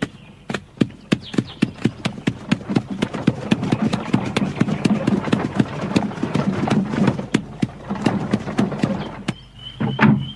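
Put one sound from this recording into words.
Cart wheels rumble along.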